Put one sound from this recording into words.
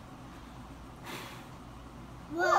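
A small child blows out a candle with a short puff of breath.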